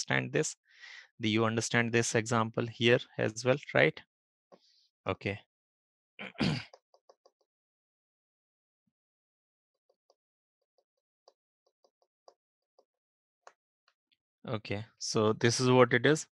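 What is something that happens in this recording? A man speaks calmly and explains, heard through a microphone on an online call.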